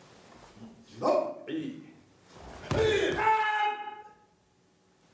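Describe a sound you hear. A man lets out short, loud shouts up close.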